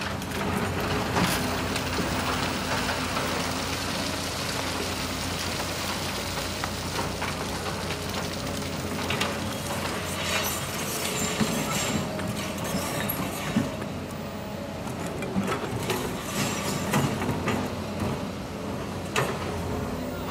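Rocks and dirt clatter into a truck bed.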